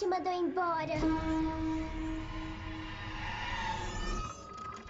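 A piano note rings out and slowly fades.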